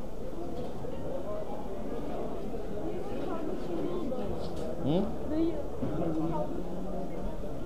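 A crowd of men and women chatter nearby in a large echoing hall.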